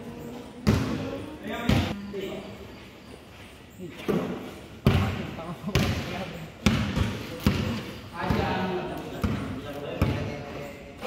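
A basketball bounces on a hard court, echoing in a large open hall.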